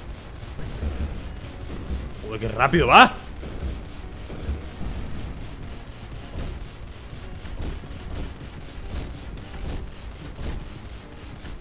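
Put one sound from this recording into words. Rapid gunshots pop from a video game.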